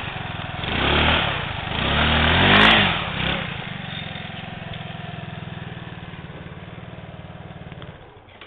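A scooter engine revs loudly in bursts, then idles and fades as it moves away.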